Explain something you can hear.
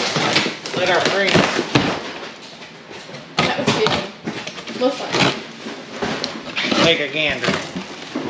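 A box cutter slices through cardboard.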